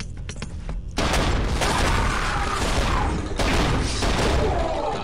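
Guns fire in loud rapid bursts.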